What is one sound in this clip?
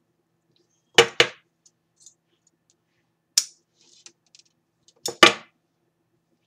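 Scissors snip sharply several times.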